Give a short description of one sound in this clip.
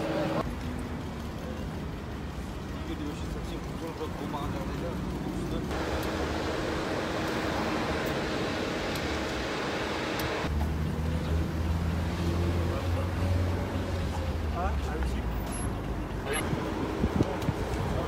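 Traffic rumbles past on a road outdoors.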